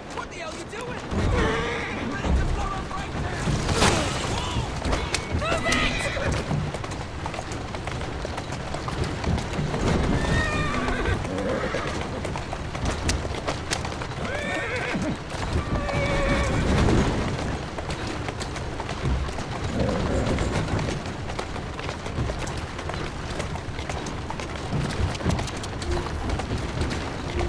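Carriage wheels rattle and rumble over cobblestones.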